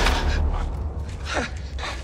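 A man shouts in alarm.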